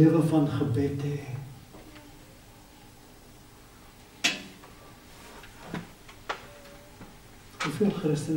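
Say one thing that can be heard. An elderly man preaches with animation through a microphone in a reverberant hall.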